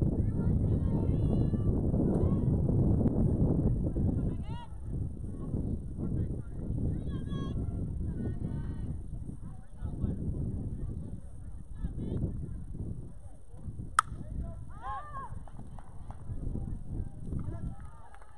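Young players shout and call out from a distance across an open field.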